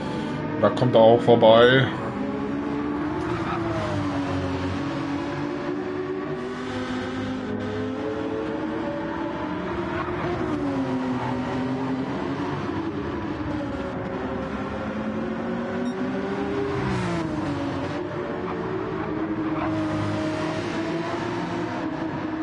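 A race car engine roars steadily, its pitch rising and falling as it shifts gears.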